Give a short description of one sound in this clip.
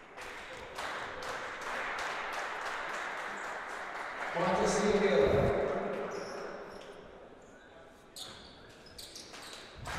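A ball bounces on a wooden court.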